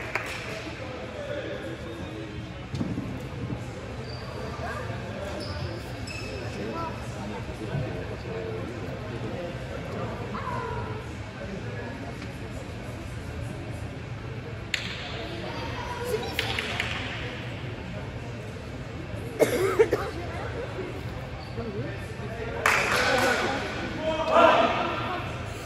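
Voices of young men and women chatter and call out across a large echoing hall.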